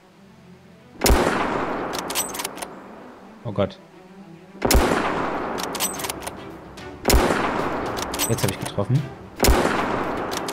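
A rifle fires loud shots that echo away, one every few seconds.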